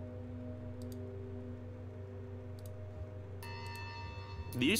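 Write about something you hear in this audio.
Short game interface clicks sound as menus open.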